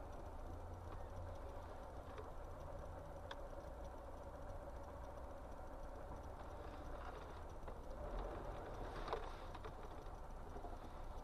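A truck engine idles with a steady low rumble nearby.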